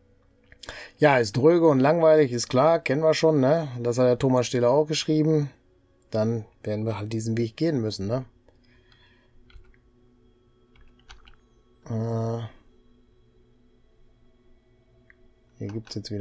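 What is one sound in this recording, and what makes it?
A middle-aged man talks calmly and closely into a microphone.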